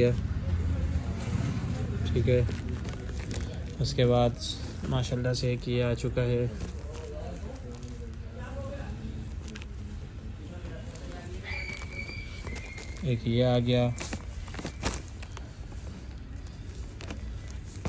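Folded cloth rustles as it is turned over.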